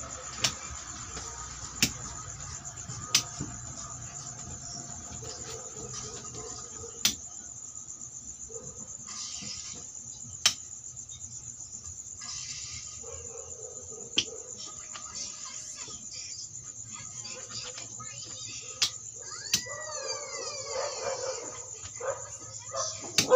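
Plastic game pieces click as they are placed on a wooden board.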